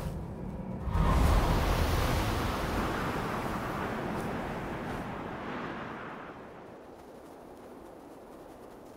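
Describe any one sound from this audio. Wind rushes steadily and slowly fades.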